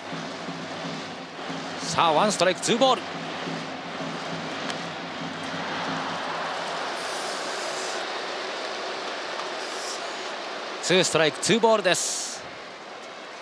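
A stadium crowd murmurs and cheers in a large domed stadium.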